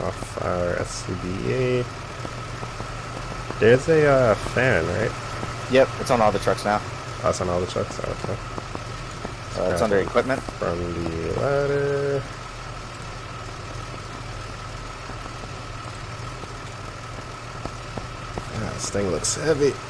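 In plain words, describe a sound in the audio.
Fire truck engines idle with a low, steady rumble.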